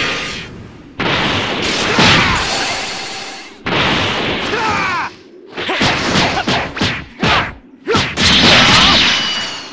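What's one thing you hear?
Punches and kicks land with sharp thuds in quick bursts.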